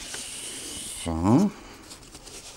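Curling ribbon squeaks sharply as it is drawn across a blade.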